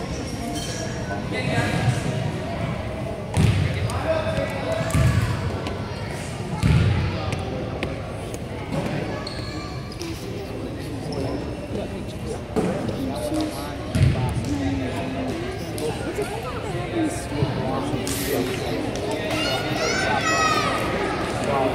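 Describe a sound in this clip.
Children and adults chatter in a large echoing gym.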